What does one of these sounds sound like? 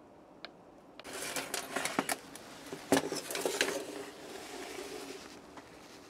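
A small power tool is handled and knocks against a metal surface.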